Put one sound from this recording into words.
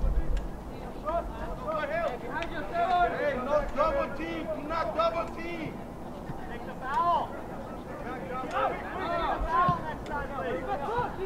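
Young men shout and call out across an open outdoor field at a distance.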